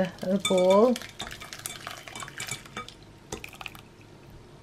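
Thick liquid pours and splashes into a sieve.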